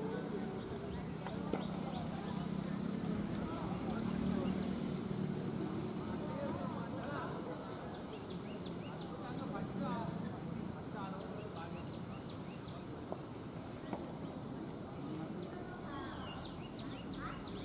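Young men talk together in a huddle outdoors.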